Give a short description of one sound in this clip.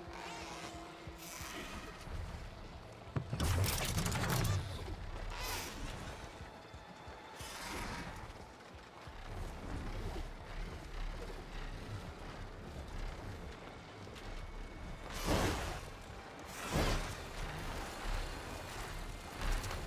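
Wind rushes steadily past a flying creature.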